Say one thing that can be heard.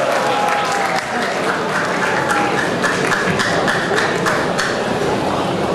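A crowd claps along in quick rhythm.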